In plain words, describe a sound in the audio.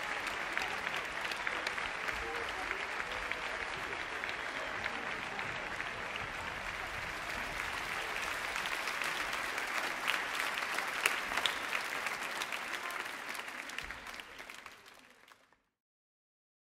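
A large group of children sings in an echoing hall.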